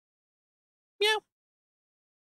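A young man gives a short sharp exclamation.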